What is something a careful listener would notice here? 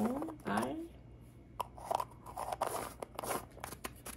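Two halves of a plastic capsule click and scrape together.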